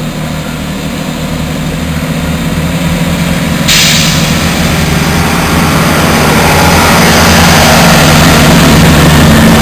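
A passenger train rumbles past close by, its engine humming and growing louder.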